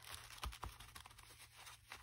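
Paper rustles softly under hands pressing it flat.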